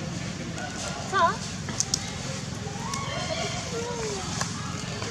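A baby monkey gives short high squeaks.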